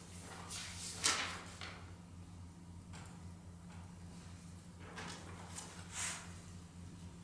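Paper rustles as a man turns pages.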